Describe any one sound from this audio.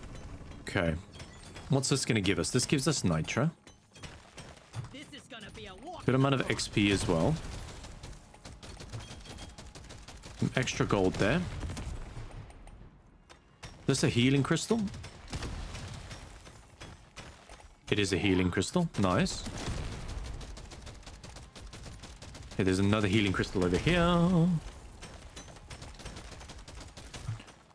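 Rapid gunfire rattles.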